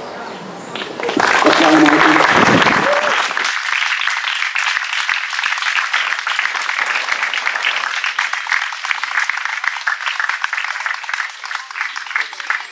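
An audience applauds steadily.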